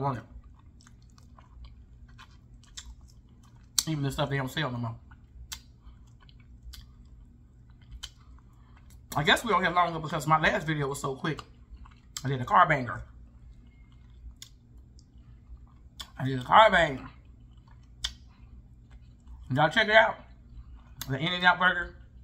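A woman chews and bites into crunchy food.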